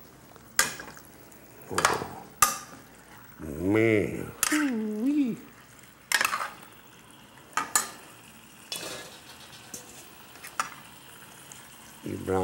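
A metal spoon clanks and scrapes against a pan.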